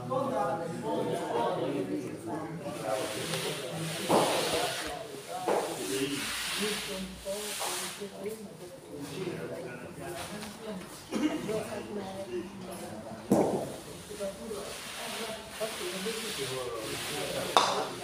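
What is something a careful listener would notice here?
Men talk and chatter in a large echoing hall.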